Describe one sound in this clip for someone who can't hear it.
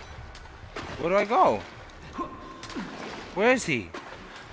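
A young man exclaims loudly into a microphone, his voice rising and falling.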